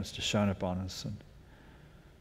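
A middle-aged man speaks briefly into a microphone in a quiet room.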